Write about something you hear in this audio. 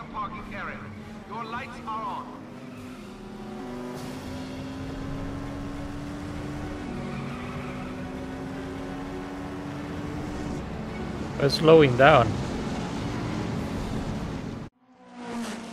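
A race car engine hums steadily and shifts gears.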